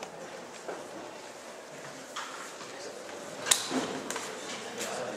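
A man speaks into a microphone over a loudspeaker in an echoing room.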